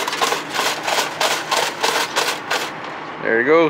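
A reel of measuring tape rattles as it is pulled out in quick bursts.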